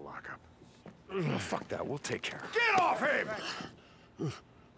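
A man shouts angrily at another man.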